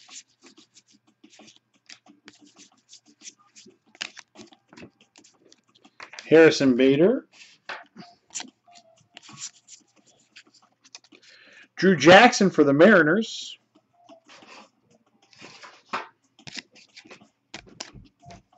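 Trading cards rustle and flick against each other as they are shuffled by hand.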